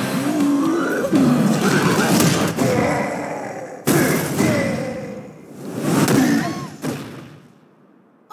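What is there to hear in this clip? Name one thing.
A game character roars and grunts.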